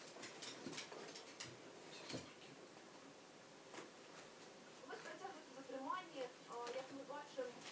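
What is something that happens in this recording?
A small dog's paws pad softly on a couch.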